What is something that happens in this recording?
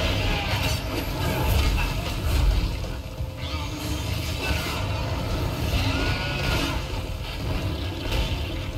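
Heavy thuds and blasts boom as enemies are hit.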